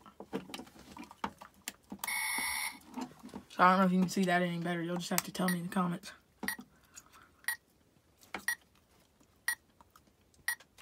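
Buttons on a small device click as they are pressed.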